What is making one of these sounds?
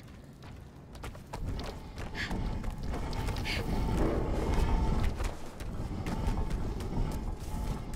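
Quick footsteps run across hollow wooden boards.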